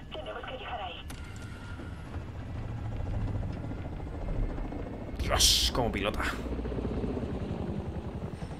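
A helicopter's rotor thumps with a deep, steady roar.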